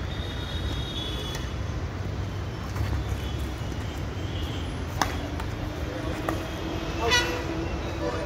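Badminton rackets strike a shuttlecock with sharp taps.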